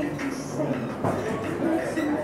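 Weight plates on a barbell clank as the barbell is lifted.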